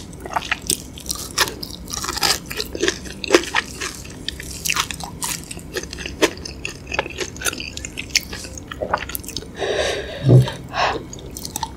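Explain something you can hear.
A young woman chews crunchy food close to a microphone.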